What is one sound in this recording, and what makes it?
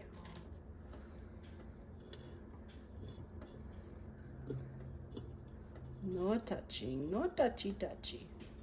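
Breaded food sticks are set down with soft taps on a metal basket.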